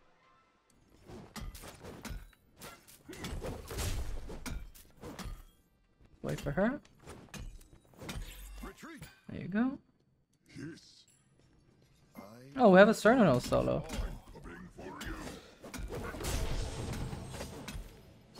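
Swords slash and strike in a fast fight.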